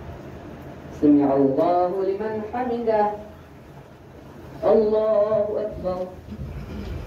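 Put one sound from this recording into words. A man chants aloud in a long, drawn-out call.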